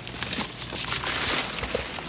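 A plastic water bottle crinkles in a hand.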